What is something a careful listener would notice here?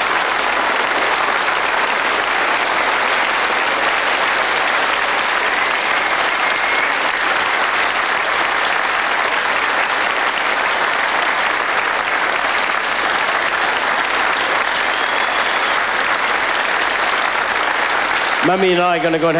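A large audience applauds loudly and steadily.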